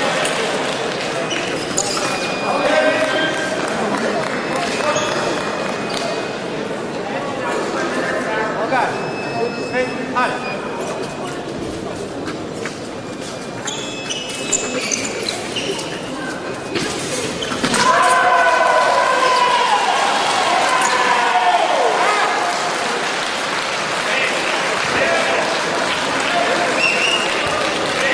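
Voices murmur and chatter throughout a large echoing hall.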